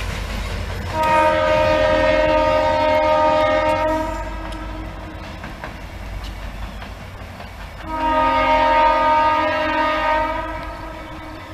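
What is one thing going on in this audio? A train horn blows in long, loud blasts.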